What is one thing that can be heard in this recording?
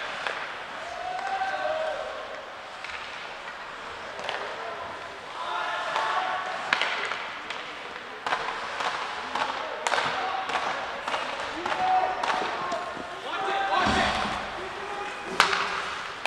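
Players and spectators shout from across a large echoing rink.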